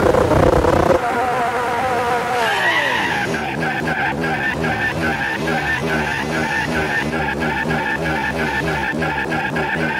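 A race car engine roars as it speeds up.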